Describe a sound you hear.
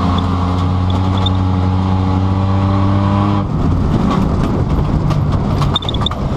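A car engine drones loudly from inside the car, then turns to a rough rumble.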